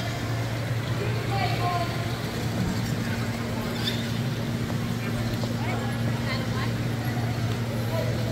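Electric wheelchair motors whir steadily in a large echoing hall.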